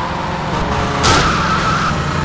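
A car crashes into a motorbike with a sudden thud.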